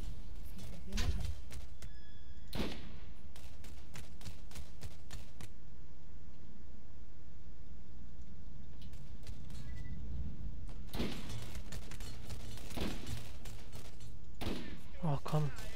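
Rifle shots ring out loudly.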